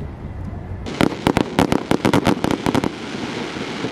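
Fireworks crackle and pop in rapid bursts.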